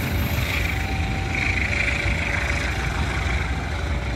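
A diesel locomotive rumbles slowly along the tracks nearby.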